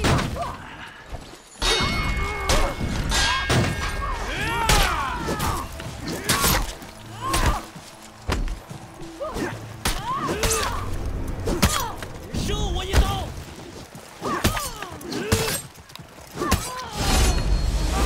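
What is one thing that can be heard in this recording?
Metal swords clash and clang sharply, again and again.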